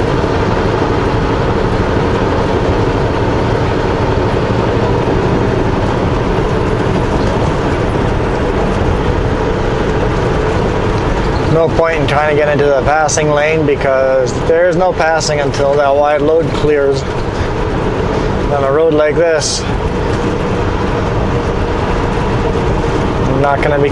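A vehicle's engine hums and tyres roar steadily on a highway.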